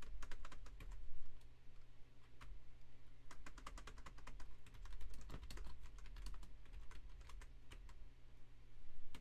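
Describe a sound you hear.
Keys clatter quickly on a computer keyboard, close by.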